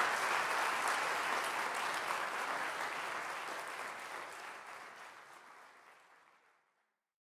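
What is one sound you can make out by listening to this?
An audience applauds in a hall, then the applause fades away.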